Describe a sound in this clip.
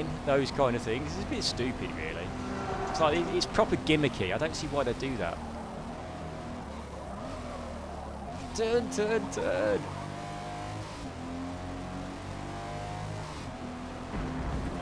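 A car engine hums and revs, rising and falling as gears change.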